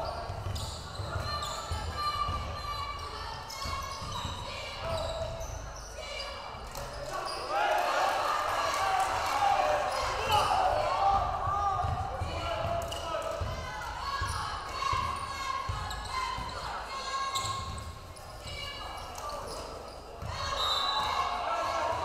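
A crowd cheers and murmurs in a large echoing gym.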